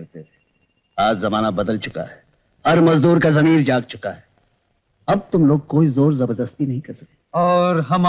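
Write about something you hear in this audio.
A man speaks sternly and forcefully, close by.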